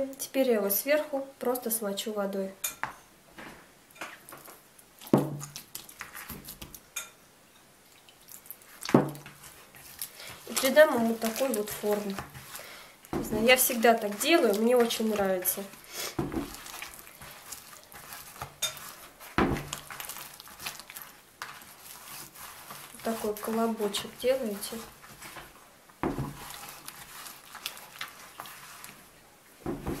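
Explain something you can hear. Hands squish and slap soft dough in a bowl.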